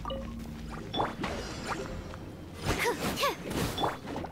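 Sharp combat effects whoosh and crash in quick bursts.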